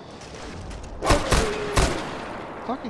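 A rifle fires loud shots in quick succession.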